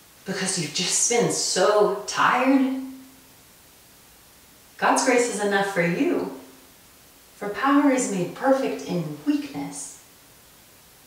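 A young woman speaks calmly and clearly nearby, pausing between phrases.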